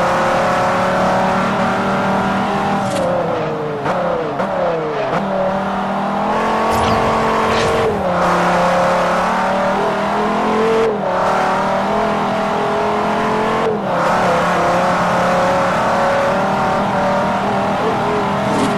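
A car engine roars loudly, dropping in pitch as it slows, then revving up through quick gear shifts.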